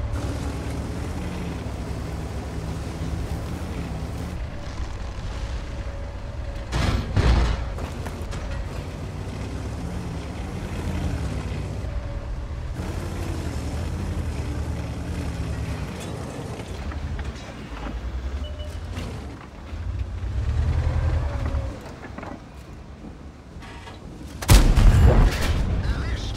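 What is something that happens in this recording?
A heavy tank engine rumbles and whines as the tank drives.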